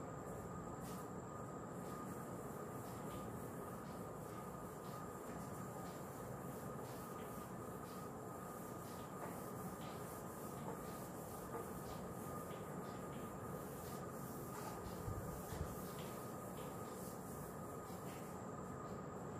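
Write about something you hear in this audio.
An eraser rubs and squeaks across a whiteboard.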